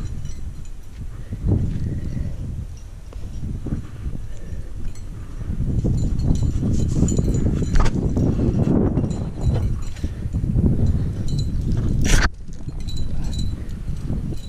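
Wind buffets against a microphone outdoors.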